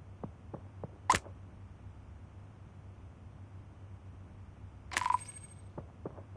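A bright chime rings out a few times.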